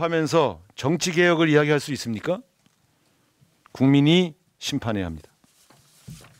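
A middle-aged man reads out a statement into a microphone, in short phrases with pauses.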